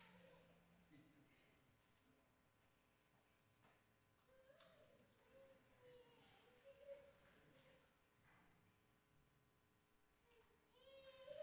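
An elderly crowd murmurs softly in a large, echoing hall.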